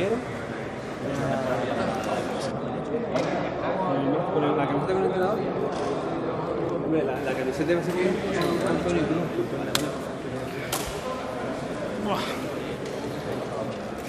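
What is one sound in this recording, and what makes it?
Several people talk over one another in a busy room.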